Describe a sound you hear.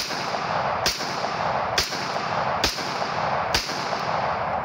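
A pistol fires loud shots outdoors, one after another.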